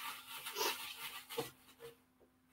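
Paper tickets rustle inside a metal drum.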